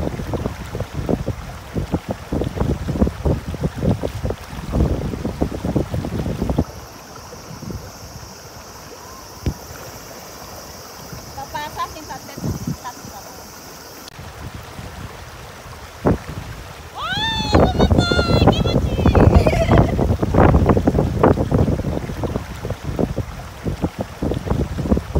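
Water splashes and churns around a person wading in a shallow river.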